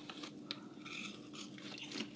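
A man crunches on a chip.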